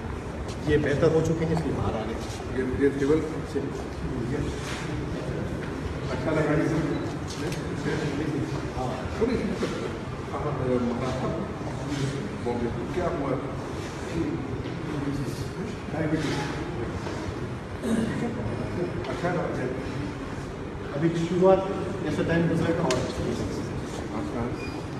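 Several men talk with one another nearby.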